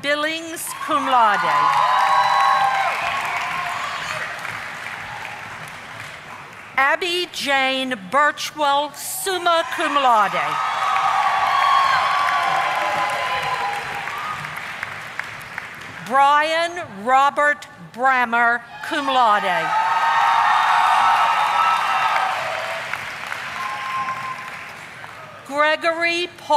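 An audience claps and cheers in a large echoing hall.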